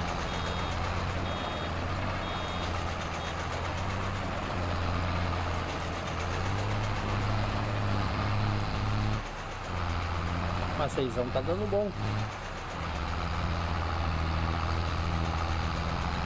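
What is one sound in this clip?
A tractor engine hums steadily at low speed.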